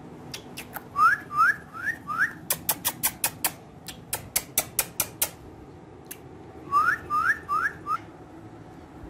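A parrot gives short, rising squawks up close.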